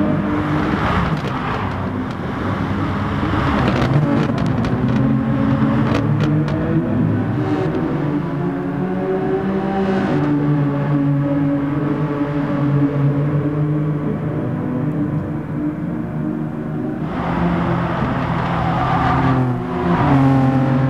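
Racing car engines roar at high revs.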